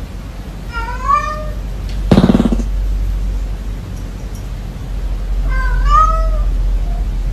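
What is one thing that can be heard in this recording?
A cat meows twice, close by.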